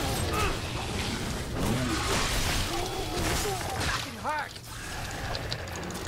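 A blade slashes through flesh.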